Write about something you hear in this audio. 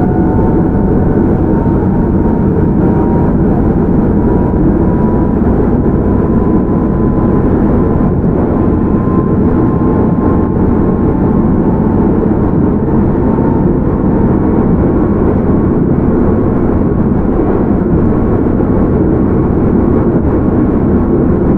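A train rumbles along the tracks with a steady low roar.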